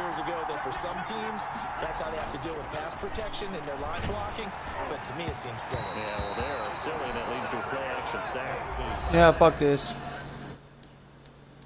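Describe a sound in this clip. A stadium crowd roars loudly.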